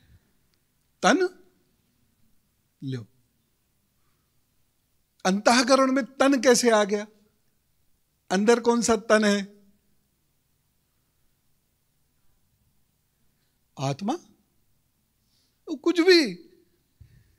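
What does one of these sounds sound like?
A man speaks with animation through a microphone, in short bursts.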